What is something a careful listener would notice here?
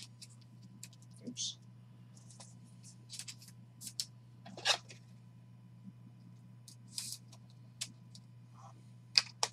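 Plastic card sleeves rustle and click close up.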